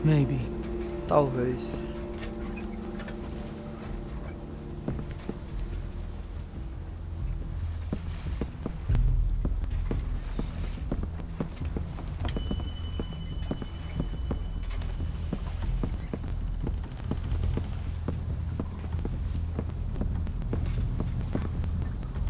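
Waves wash and lap against a wooden boat.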